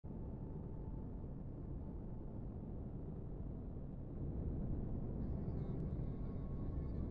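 A spaceship engine rumbles deeply and steadily, then grows louder.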